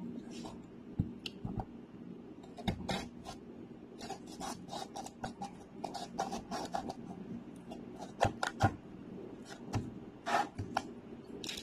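A knife crunches through a firm vegetable onto a cutting board.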